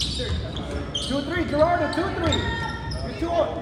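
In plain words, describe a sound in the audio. Young players and spectators call out in the echoing gym.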